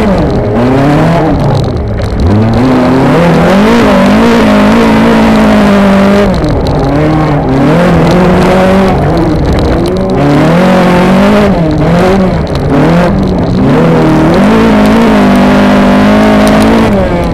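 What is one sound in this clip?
Tyres and gravel rumble and rattle beneath a car on a dirt track.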